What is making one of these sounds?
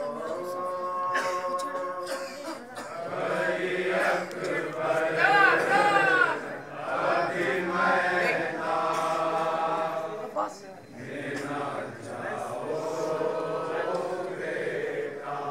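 A young man sings a lament loudly through a microphone.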